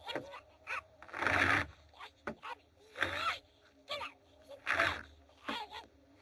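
A man gasps and pants heavily, close by.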